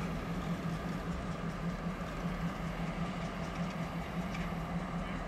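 Diesel-electric freight locomotives rumble as they roll slowly along the track.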